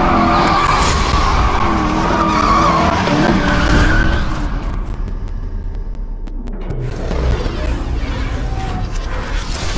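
Car engines roar.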